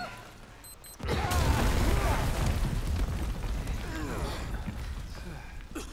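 An explosion bursts with a loud, rumbling roar.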